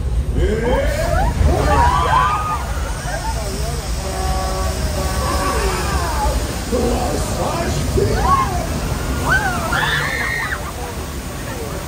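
Riders shout and squeal with excitement close by.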